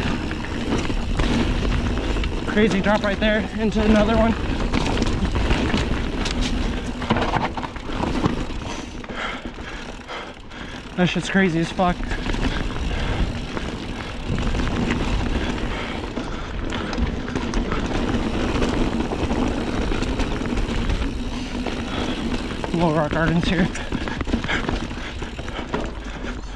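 A bicycle's frame and parts rattle over bumps.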